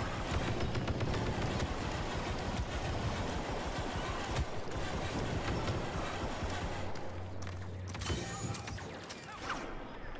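A walking robot's metal feet clank on a stone floor.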